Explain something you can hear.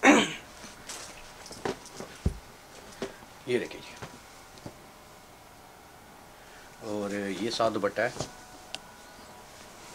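Fabric rustles and flaps as a cloth is unfolded.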